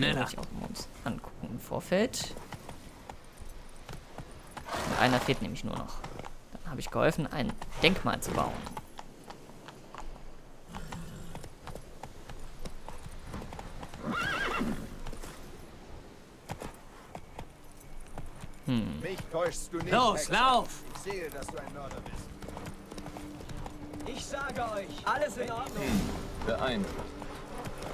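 A horse gallops, its hooves pounding on the ground.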